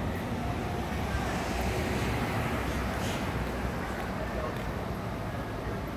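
A car drives slowly past.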